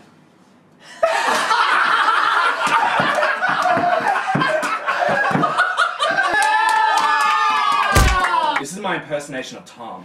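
A group of young men laugh and shout loudly.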